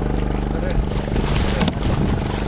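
Many small fish splash and churn at the water's surface.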